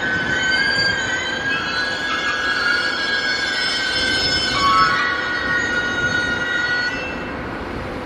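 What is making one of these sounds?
Train wheels squeal loudly against the rails.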